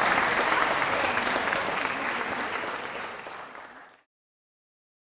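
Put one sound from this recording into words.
A large crowd claps and cheers, then quickly fades away.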